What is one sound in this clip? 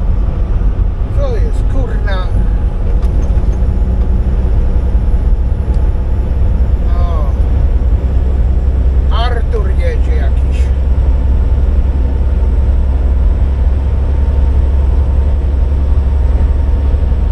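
Tyres hum on the road at highway speed.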